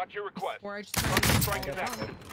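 A rifle fires with a loud crack.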